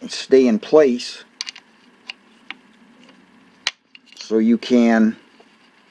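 A hex key clicks and scrapes against a metal bolt.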